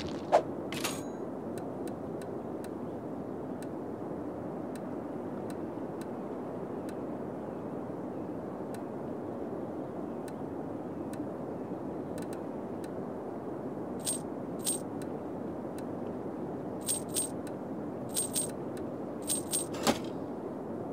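Short electronic menu clicks and chimes sound in quick pairs.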